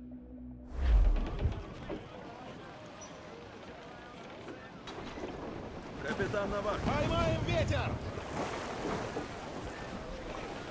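Wind blows through a ship's sails and rigging.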